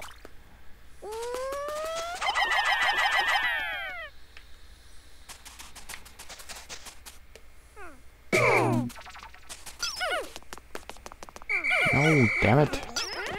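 Small creatures chirp and squeak in high, sliding voices.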